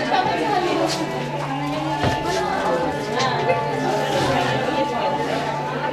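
Several people chatter nearby.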